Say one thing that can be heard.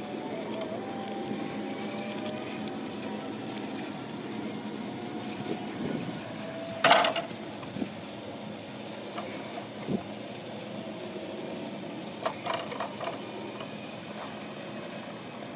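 An electric forklift's mast whines as it lifts.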